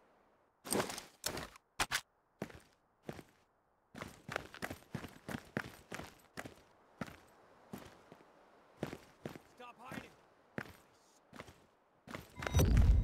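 Footsteps tread quickly on a hard floor.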